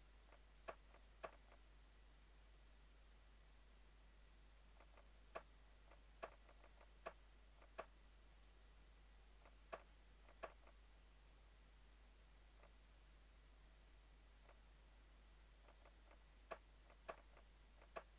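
Short soft clicks sound now and then as menu items are picked.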